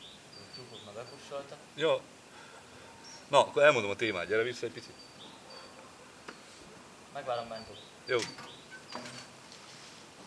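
A man speaks in short bursts nearby, outdoors.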